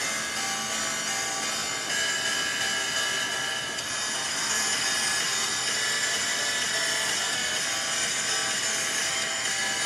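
A washing machine drum turns with a steady hum.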